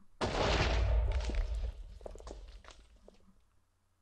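A loud blast booms and rumbles away.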